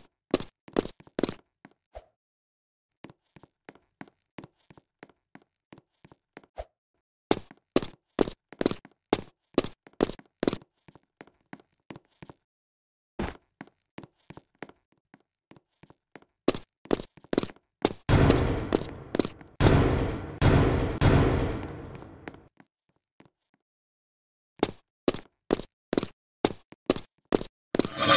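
Quick footsteps tap in bursts on a hard floor.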